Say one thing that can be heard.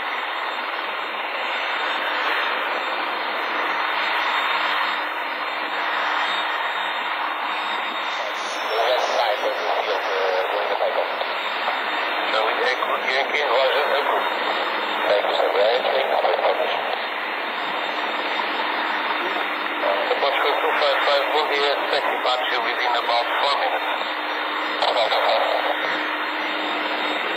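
Jet engines roar steadily in the distance.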